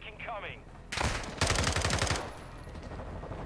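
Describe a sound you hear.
A rifle fires in a rapid burst.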